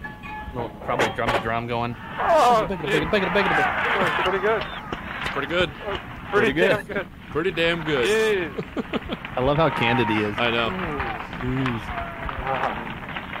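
A young man laughs and talks through an online call.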